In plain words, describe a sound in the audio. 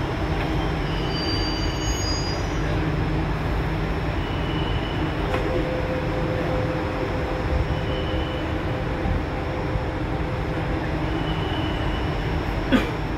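A stopped train hums steadily and low.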